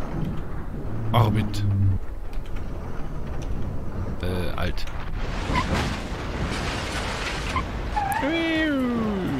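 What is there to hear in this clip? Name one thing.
A car's metal body scrapes and crashes along the ground.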